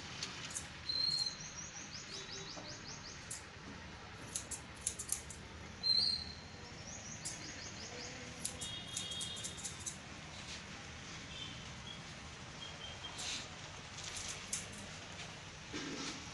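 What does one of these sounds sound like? Scissors snip rapidly through hair close by.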